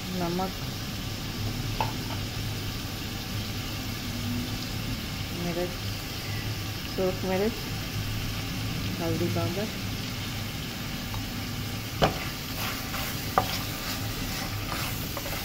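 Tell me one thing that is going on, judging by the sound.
Food sizzles softly in a pan.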